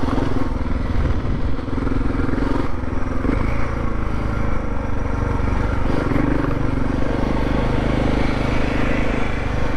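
Wind rushes past a microphone outdoors.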